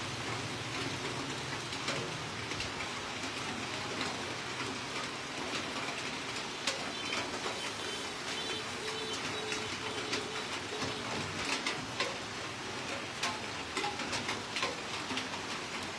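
Charcoal crackles and pops under roasting pork.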